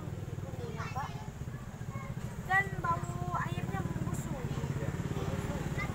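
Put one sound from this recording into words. A young woman talks to children up close.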